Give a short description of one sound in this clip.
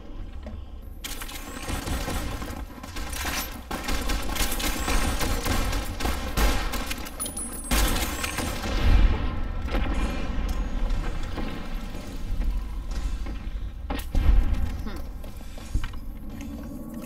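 Gunfire cracks and echoes in rapid bursts.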